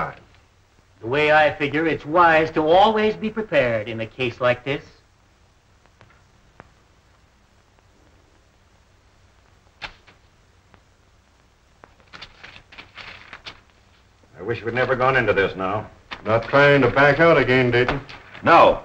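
A man speaks calmly and firmly close by.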